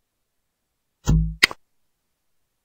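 A game's shooter fires a bubble with a thump and a sharp pop.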